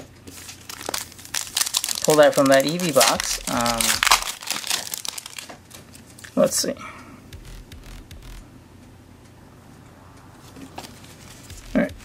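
Foil card wrappers and cards crinkle and rustle in hands.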